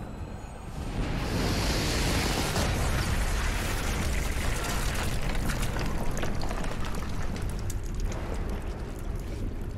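A huge explosion booms and rumbles.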